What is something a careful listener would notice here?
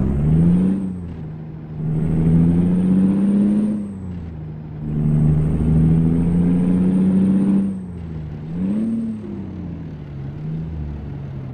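A truck's diesel engine drones steadily, rising and falling in pitch as it speeds up and shifts gears.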